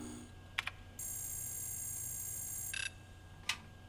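A computer gives a steady high electronic tone while it processes.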